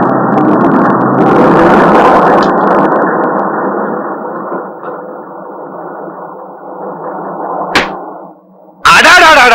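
A bus engine rumbles loudly and slowly fades.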